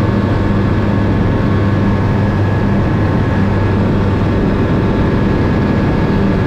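Wind rushes past the cockpit.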